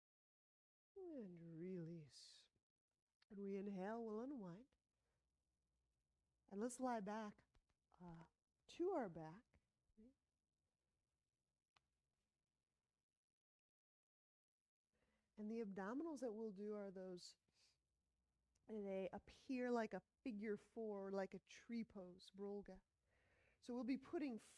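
A young woman speaks calmly and clearly into a close microphone, in short phrases with pauses.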